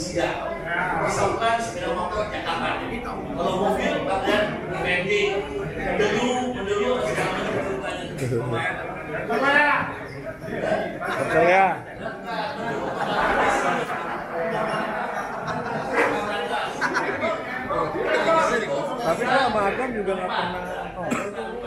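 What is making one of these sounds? Many people chatter in the room.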